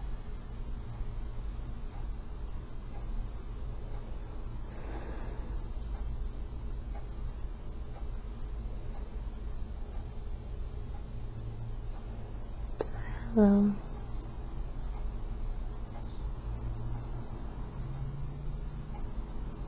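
A woman breathes slowly and heavily in her sleep, close by.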